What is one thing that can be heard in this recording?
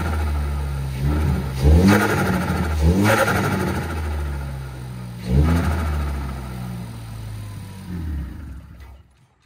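A car engine revs up sharply and drops back several times.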